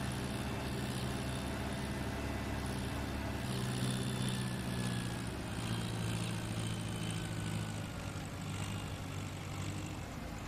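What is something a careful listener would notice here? A tractor engine hums steadily while driving.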